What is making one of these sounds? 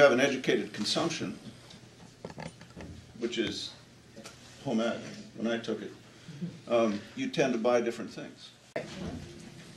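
A middle-aged man speaks with animation, close by in a room.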